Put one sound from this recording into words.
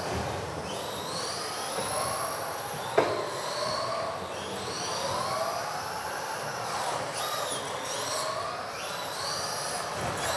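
Small electric model cars whine as they race around a large echoing hall.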